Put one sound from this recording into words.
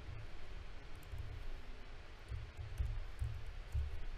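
Keys clack as someone types on a keyboard.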